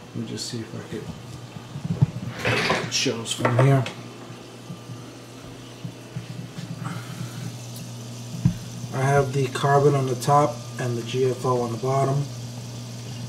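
Water bubbles and trickles in a fish tank.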